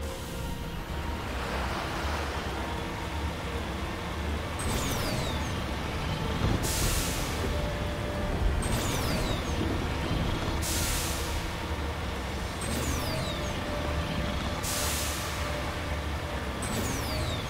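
Water splashes and sprays under the wheels of a vehicle.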